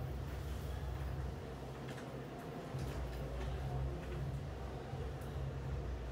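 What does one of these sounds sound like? Bedding and a blanket rustle softly.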